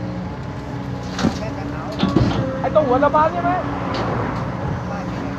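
Soil pours into a metal truck bed with a rattling thud.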